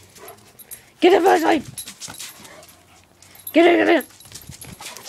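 A small dog barks.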